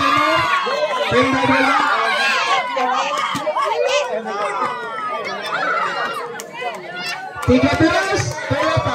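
A crowd of young spectators shouts and cheers loudly close by, outdoors.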